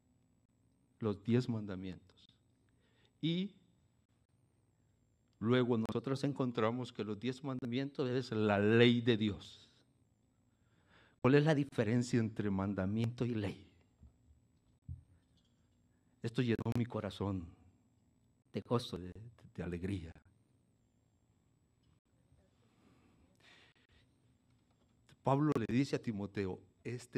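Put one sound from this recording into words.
An elderly man speaks with animation through a microphone, in bursts with pauses.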